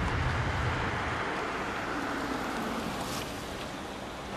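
A car engine hums as the car drives up close.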